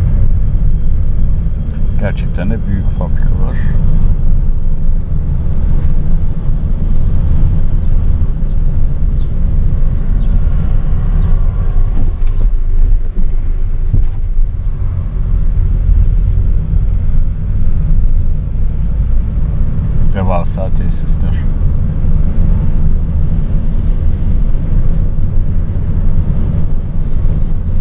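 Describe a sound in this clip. Wind rumbles steadily against a microphone outdoors.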